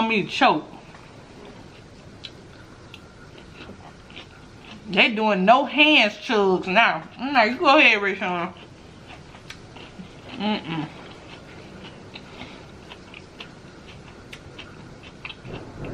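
A young woman chews food with soft wet smacking sounds.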